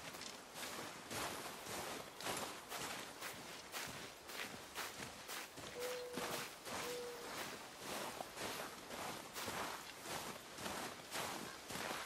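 Heavy footsteps crunch steadily through snow.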